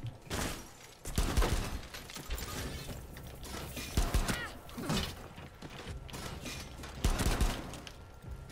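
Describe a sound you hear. Pistol shots ring out in sharp bursts.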